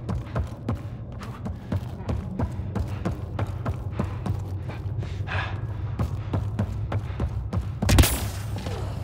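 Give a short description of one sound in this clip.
Heavy footsteps thud rapidly on a metal floor.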